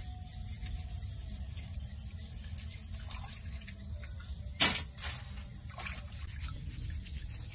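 Hands splash and swish in a bowl of water.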